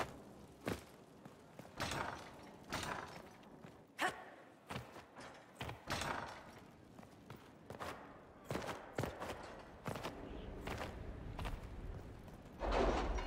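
Footsteps tap quickly on a stone floor in an echoing hall.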